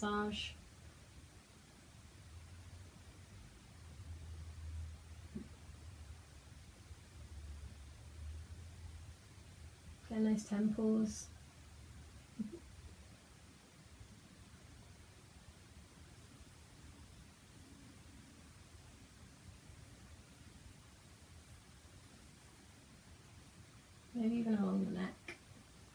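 A young woman speaks calmly, close by, in short phrases.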